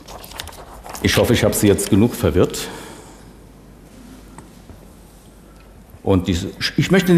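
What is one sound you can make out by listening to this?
An elderly woman lectures calmly through a microphone.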